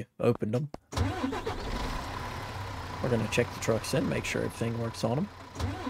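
A large truck engine starts and rumbles steadily.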